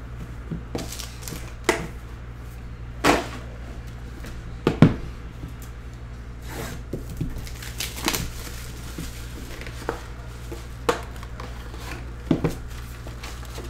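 Cardboard boxes knock and tap against a table.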